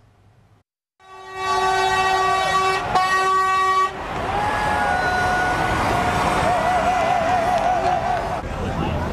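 A crowd of protesters makes a loud, steady din outdoors.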